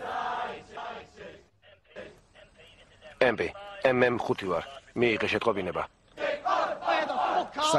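A crowd of men chants and shouts loudly.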